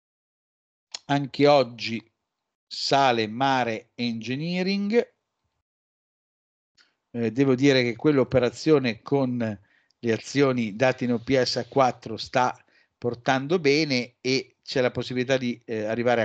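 A young man talks calmly through an online call microphone.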